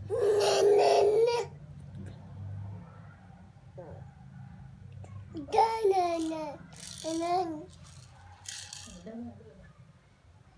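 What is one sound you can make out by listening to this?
A toddler babbles and squeals up close.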